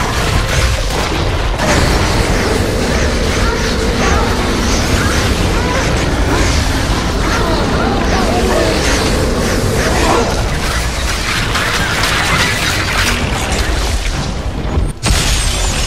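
Magic blasts crackle and roar loudly.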